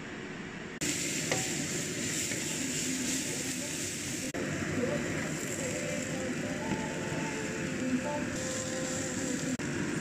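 A wooden spatula scrapes and stirs in a pan.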